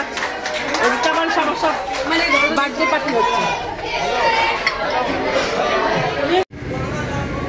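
A crowd of diners chatters in the background.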